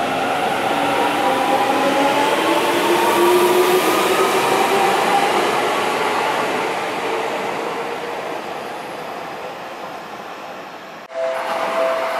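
An electric train pulls out with a rising motor whine that slowly fades into the distance.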